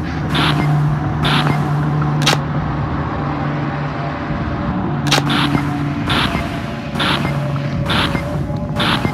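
Electronic static hisses and crackles.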